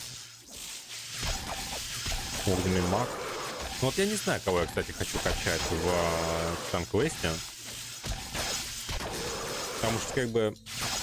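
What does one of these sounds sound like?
Game combat sounds clash and crackle with magic blasts.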